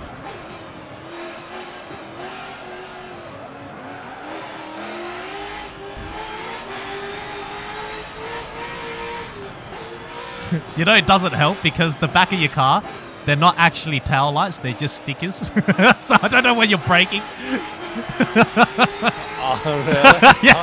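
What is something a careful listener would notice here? A racing car engine roars, rising in pitch and dropping as gears change.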